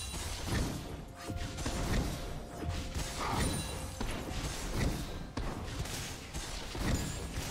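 Fiery magic blasts whoosh and burst in quick succession.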